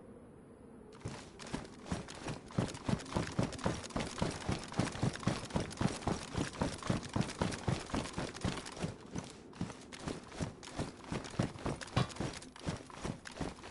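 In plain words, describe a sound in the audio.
Footsteps run quickly over gritty concrete and debris.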